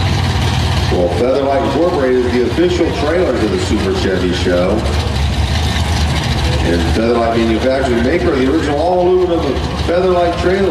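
A second car engine revs up and down again and again.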